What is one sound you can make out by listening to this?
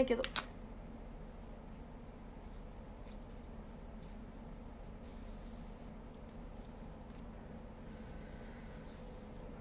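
A comb brushes through hair.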